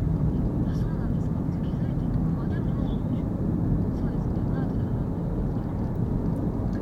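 A car engine hums low and steady from inside the car as it drives.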